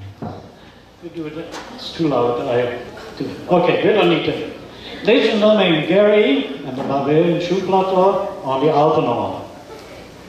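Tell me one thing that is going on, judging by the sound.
An elderly man speaks with animation through a microphone in a large hall.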